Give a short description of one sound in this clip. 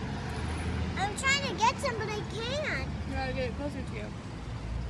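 A young girl talks in a high voice close by.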